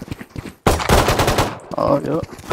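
A pistol fires a sharp shot.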